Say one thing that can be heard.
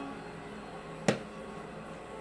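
A fist thumps sharply into a baseball glove.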